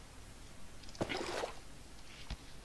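Water sloshes briefly as a bucket is filled.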